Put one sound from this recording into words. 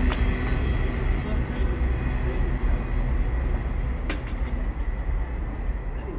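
A freight train rumbles along the tracks, slowly fading as it moves away.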